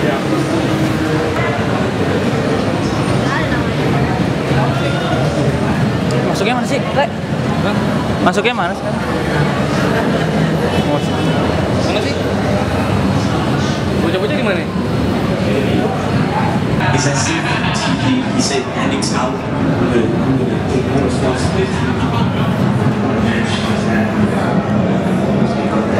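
A crowd murmurs and chatters throughout in a large echoing indoor space.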